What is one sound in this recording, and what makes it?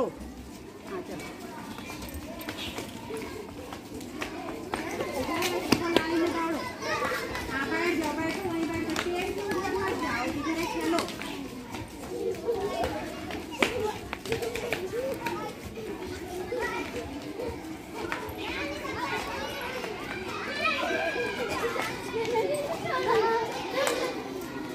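Bare feet patter and scuff on paved ground.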